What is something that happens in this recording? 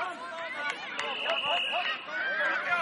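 A referee's whistle blows a short, sharp blast.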